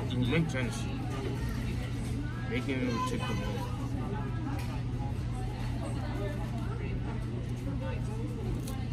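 A young man talks nearby between bites.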